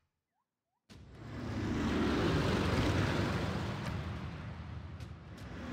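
A soft, rising whoosh swells and slowly fades.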